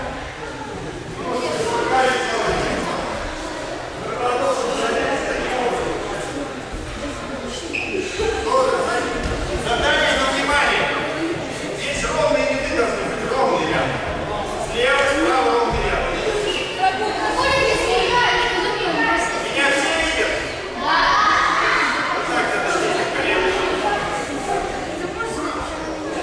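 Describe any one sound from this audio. Many children chatter and call out in a large echoing hall.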